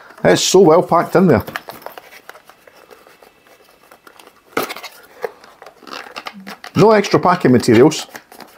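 A cardboard box rustles and scrapes as hands open it.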